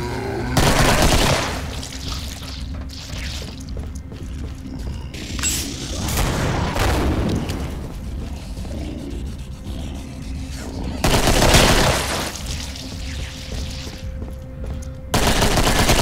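Pistols fire in loud, rapid bursts of gunshots.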